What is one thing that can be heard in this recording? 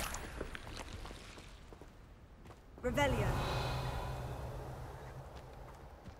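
Footsteps crunch on dirt and gravel.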